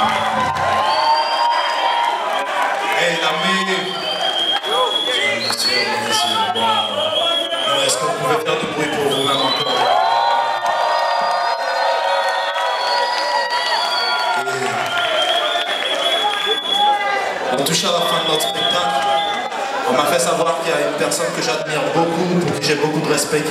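A young man sings into a microphone through loudspeakers.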